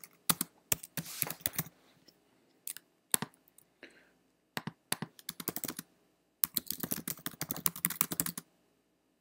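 Keys click rapidly on a computer keyboard.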